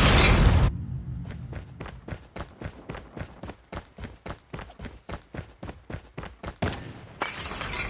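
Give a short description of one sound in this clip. Footsteps thud quickly and evenly on hard ground.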